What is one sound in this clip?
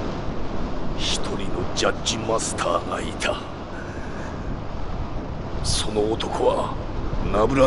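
A man speaks slowly and gravely, with pauses.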